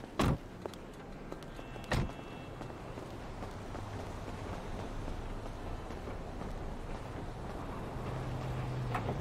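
Footsteps walk across asphalt.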